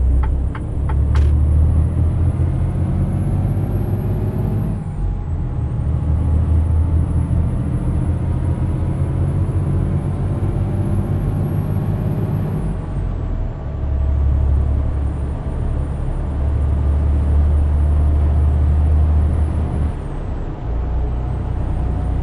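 A truck engine drones steadily, rising in pitch as it speeds up and dropping at each gear change.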